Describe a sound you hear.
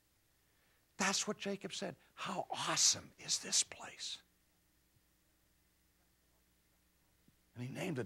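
A middle-aged man speaks animatedly and expressively into a microphone.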